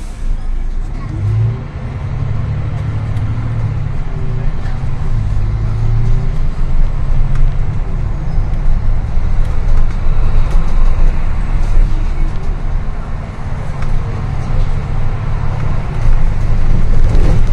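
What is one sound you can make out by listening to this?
A bus engine roars and rises in pitch as the bus pulls away and drives on.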